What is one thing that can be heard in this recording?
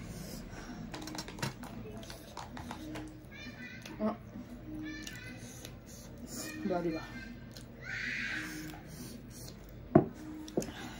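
A young woman chews and smacks her lips close by.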